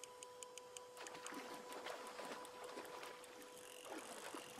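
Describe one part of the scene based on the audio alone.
A fish splashes in the water.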